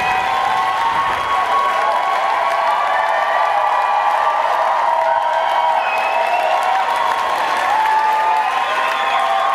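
A concert audience whistles in a large hall.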